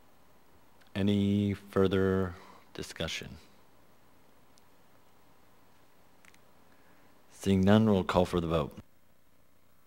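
A man speaks calmly into a microphone in short bursts.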